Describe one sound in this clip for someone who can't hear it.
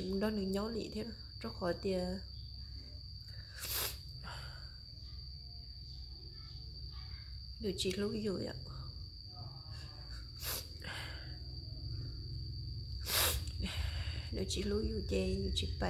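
A woman speaks calmly and close by, pausing often.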